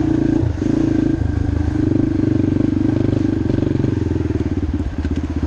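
Tyres roll and rumble over a dirt trail.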